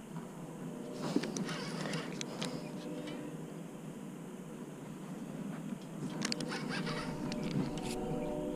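A fishing reel clicks and whirs as its handle is turned.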